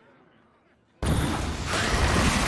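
A magic spell erupts with a loud, rushing roar.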